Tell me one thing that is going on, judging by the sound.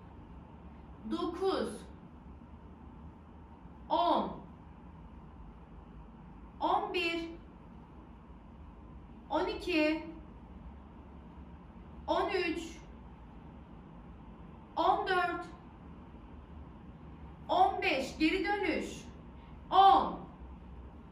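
A young woman speaks short phrases close by, at regular pauses.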